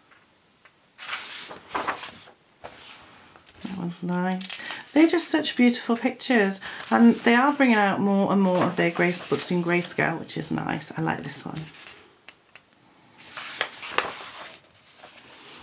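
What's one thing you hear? Paper pages turn with a soft rustle and flap.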